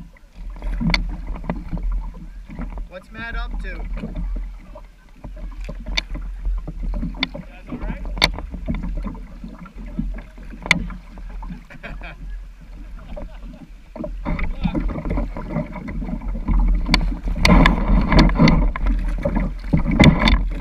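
A river ripples over shallow stones nearby.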